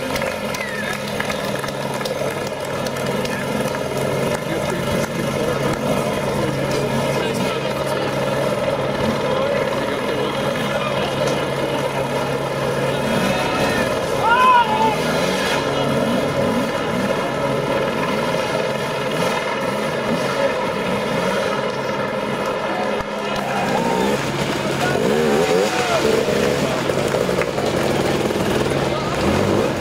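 A dirt bike engine revs and sputters close by.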